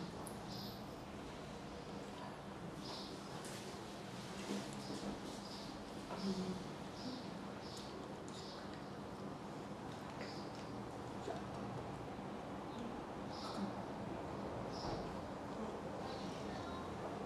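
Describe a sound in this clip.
An elderly woman speaks with animation, close by.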